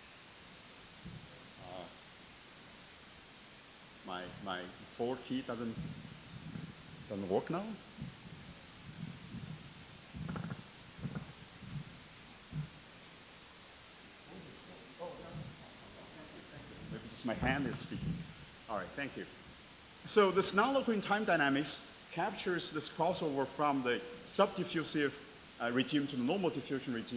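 A man speaks through a microphone in a large hall, pausing often.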